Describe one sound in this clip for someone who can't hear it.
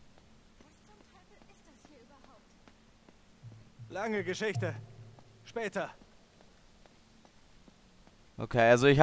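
Footsteps scuff softly on a stone floor.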